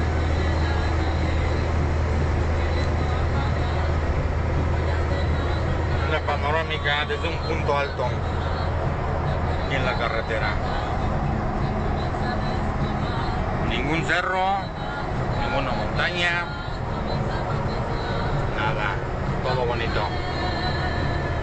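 Tyres hum on the road at speed.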